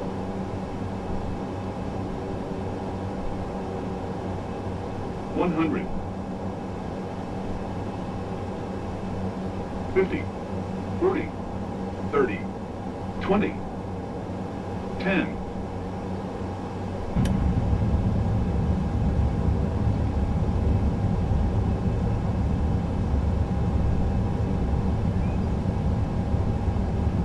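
Jet engines hum steadily.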